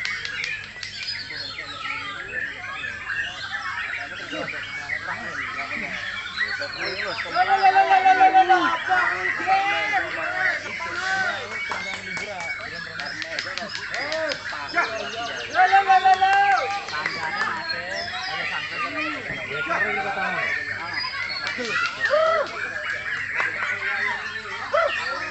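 A caged songbird sings loud, rapid, varied trills close by.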